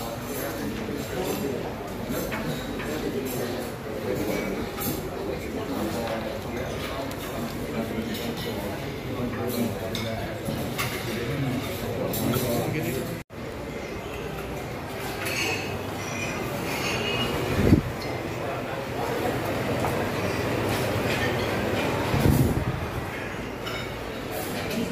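Several men chatter quietly in the background.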